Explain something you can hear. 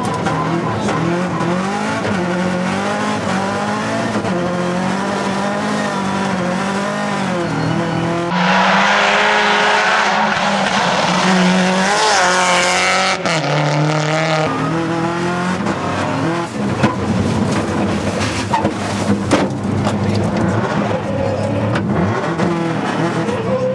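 A rally car engine revs hard, rising and falling as the gears change.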